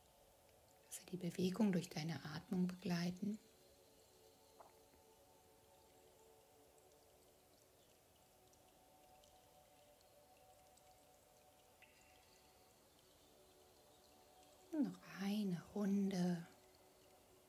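A woman speaks calmly and softly, close to a microphone.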